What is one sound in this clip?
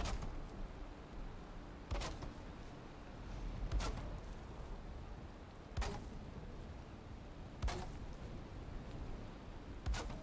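A hammer knocks on wood at a steady pace, every two seconds.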